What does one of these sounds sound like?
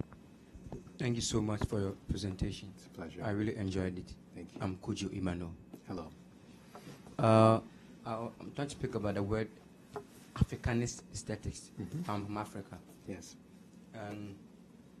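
A man speaks calmly through a microphone to an audience.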